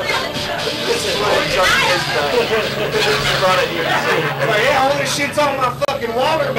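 Several men shout and talk over one another excitedly, close by.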